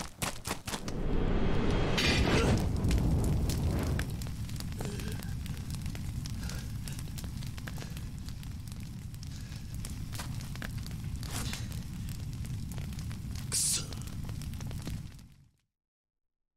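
A fire roars loudly and steadily, then cuts off.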